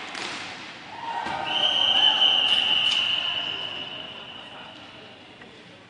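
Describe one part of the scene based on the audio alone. A small crowd cheers and shouts in a large echoing hall.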